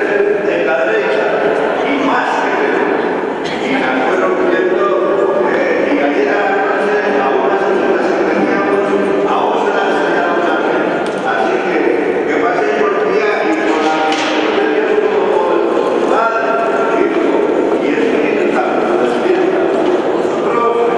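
Acoustic guitars strum along with the singing.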